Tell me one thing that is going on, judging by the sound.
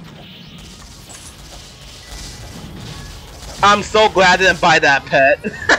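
Video game combat sound effects clash and burst.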